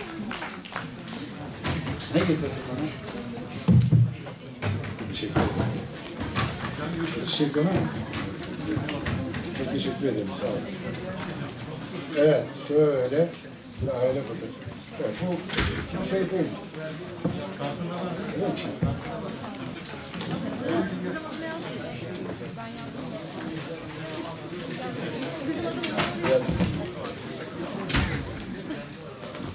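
Several people talk at once.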